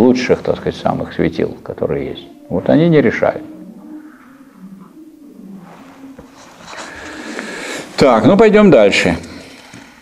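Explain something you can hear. An elderly man speaks calmly in an echoing room.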